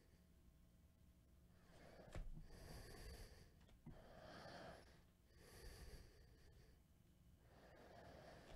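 Trading cards slide and rustle as they are handled.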